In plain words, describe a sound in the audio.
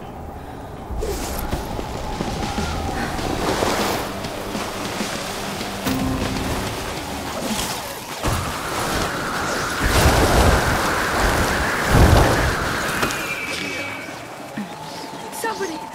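A snowboard carves and hisses over snow.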